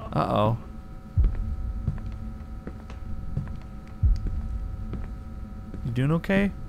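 A man speaks close to a microphone in a calm, low voice.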